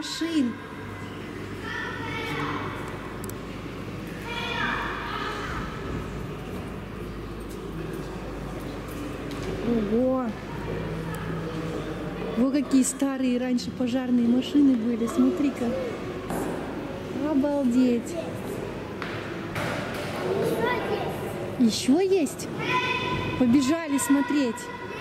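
A young child calls out and chatters nearby in a large echoing hall.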